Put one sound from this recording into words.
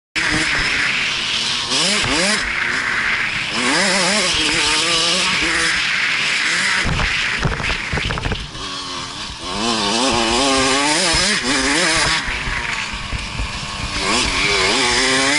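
A dirt bike engine revs up and down loudly close by.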